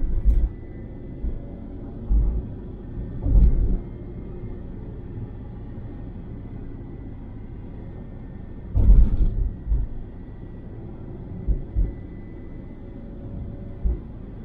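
Tyres roar on a smooth road.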